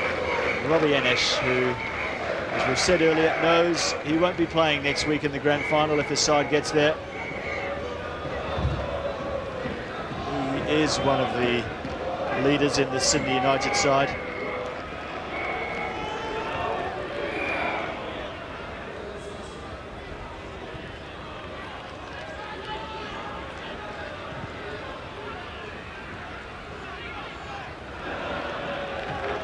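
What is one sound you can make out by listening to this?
A large stadium crowd murmurs and roars steadily outdoors.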